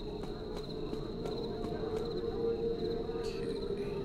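Soft footsteps pad across stone.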